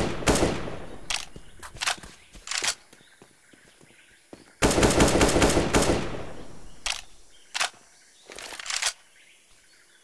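A rifle's magazine and bolt click and clack during a reload.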